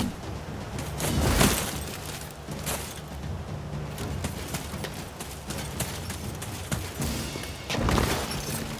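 Footsteps run quickly over leaves and undergrowth.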